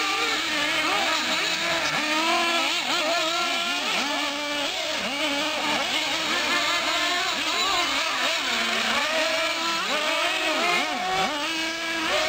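Tyres of small cars skid and crunch on loose dirt.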